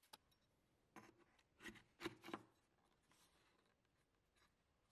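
A metal plate clicks and taps against wood.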